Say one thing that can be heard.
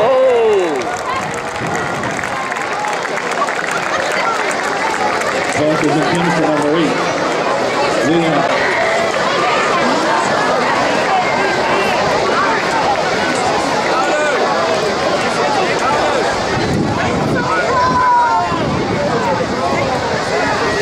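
A crowd of spectators chatters and cheers throughout.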